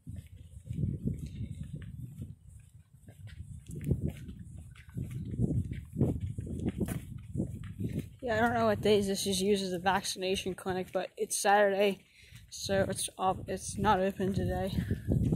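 Footsteps scuff along a concrete pavement outdoors.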